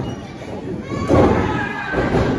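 A body slams onto a wrestling ring mat with a loud thud.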